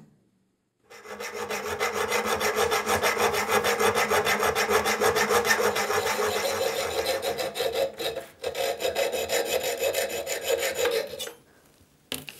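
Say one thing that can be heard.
A hacksaw cuts back and forth with a steady rasp.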